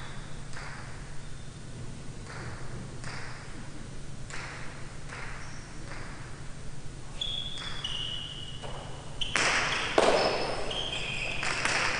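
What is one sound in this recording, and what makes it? A hard ball smacks against a wall with sharp, echoing cracks.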